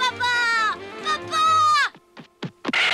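A young boy speaks in a high, excited voice.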